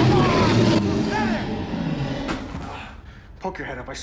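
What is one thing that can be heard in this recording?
A man speaks in a low, tense voice close by.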